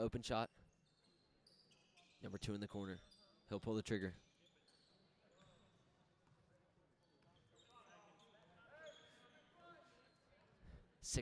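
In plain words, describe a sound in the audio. Sneakers squeak sharply on a wooden court in an echoing hall.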